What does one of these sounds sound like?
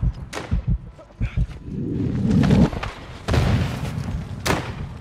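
A rifle clicks and rattles as it is raised and aimed.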